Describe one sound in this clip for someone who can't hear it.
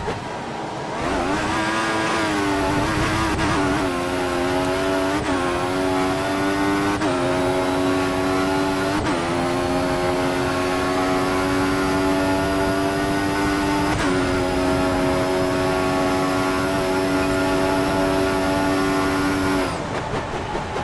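A racing car engine screams, climbing in pitch through each gear and dropping sharply at every shift.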